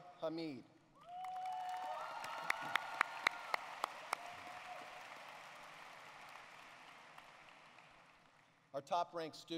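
A crowd applauds, swelling and then slowly fading.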